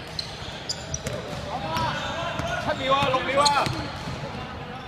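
Young men shout and cheer in an echoing hall.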